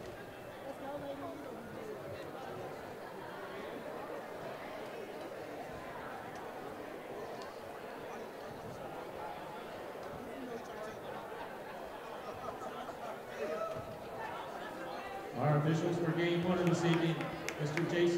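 Young women on a team call out and talk close by.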